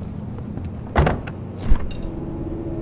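A refrigerator door clicks open.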